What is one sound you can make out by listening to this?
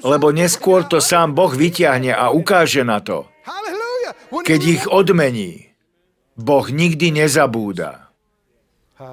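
A man speaks with animation to an audience through a microphone, in a large hall.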